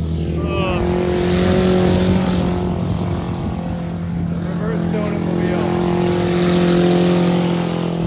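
A car engine revs as the car slides across soft mud.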